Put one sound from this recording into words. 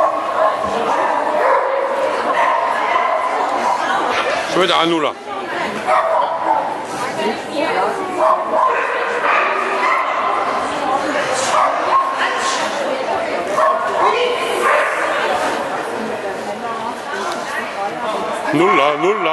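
A crowd of adults chatters in a large echoing hall.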